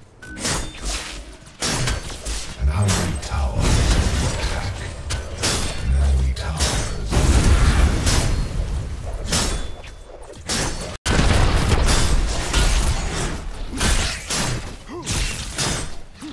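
Swords clash and weapons strike in a game battle.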